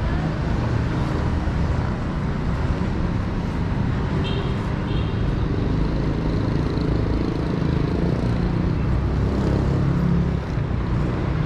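Traffic hums steadily along a nearby street.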